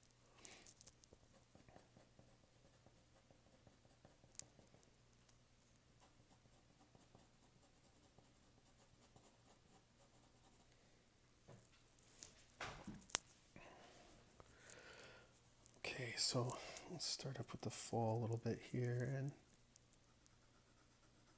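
A pencil scratches and rubs softly across paper.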